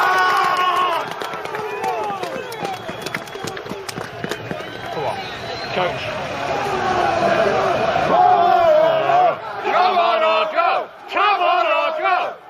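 A large crowd of men sings and chants loudly close by.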